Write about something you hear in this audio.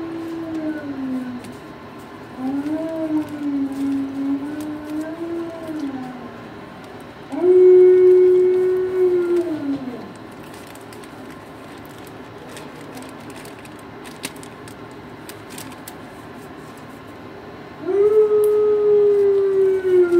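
A dog whines in long, wavering cries close by.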